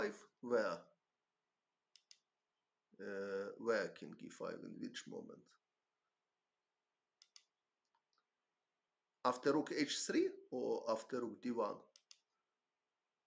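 A man talks calmly into a microphone, pausing between phrases.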